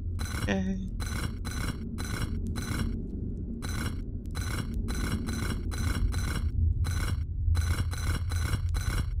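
Stone blocks click and scrape as they turn.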